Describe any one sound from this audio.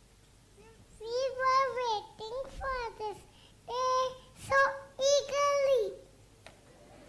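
A young girl sings through a microphone.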